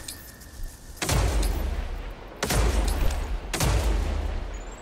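Heavy rifle shots boom loudly.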